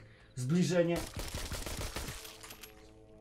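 A pistol fires a shot.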